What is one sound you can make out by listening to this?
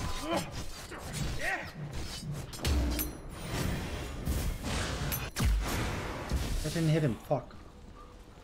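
Magic blasts and impacts crackle in a video game fight.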